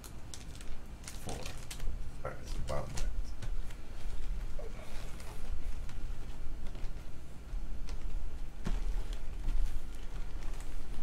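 Cardboard boxes knock and scrape as hands move them around.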